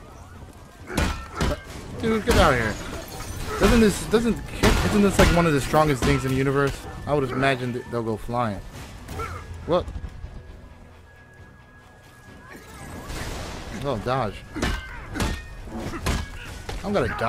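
Heavy impacts and clanging blows thud.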